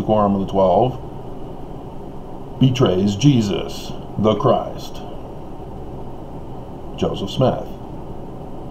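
A middle-aged man speaks calmly and close to a microphone, in short bursts with pauses.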